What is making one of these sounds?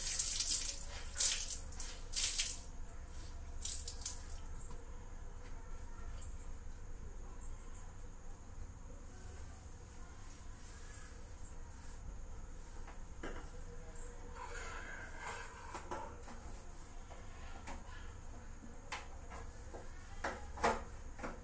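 Metal pots clink and clatter.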